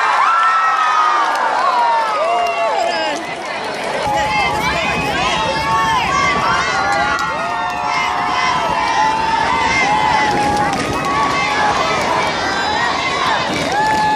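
Spectators close by shout and whoop with excitement.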